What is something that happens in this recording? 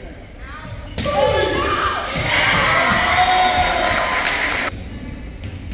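A crowd cheers and shouts loudly in a large echoing gym.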